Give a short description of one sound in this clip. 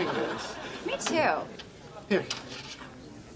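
A woman speaks briefly and close by.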